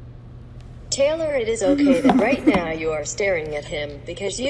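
A young woman wails and sobs loudly.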